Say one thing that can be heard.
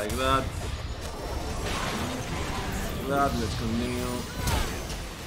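Magic spells whoosh and crackle in a fight.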